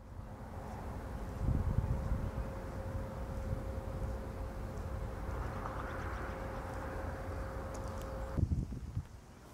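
Wind blows in gusts across the microphone outdoors.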